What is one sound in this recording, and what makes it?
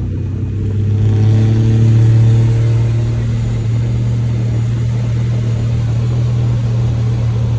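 Wind rushes past an open car window.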